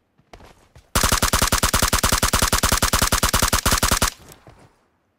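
An automatic rifle fires a long, rapid burst.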